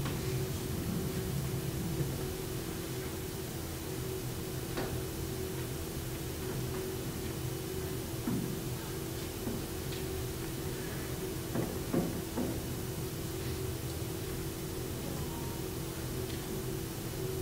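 A man speaks quietly at a distance in a large echoing hall.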